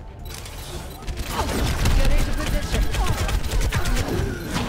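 A sci-fi energy weapon crackles and buzzes in rapid bursts.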